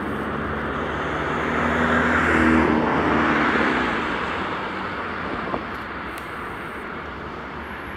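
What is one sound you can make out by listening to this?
A diesel rail maintenance vehicle rumbles steadily as it rolls along the track.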